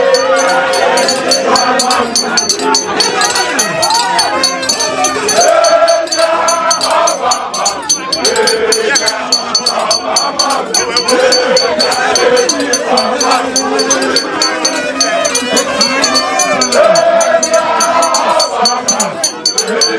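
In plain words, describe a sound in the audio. A crowd of men and women cheers and shouts excitedly close by.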